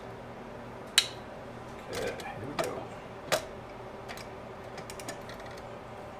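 Metal parts click and clack as they are handled.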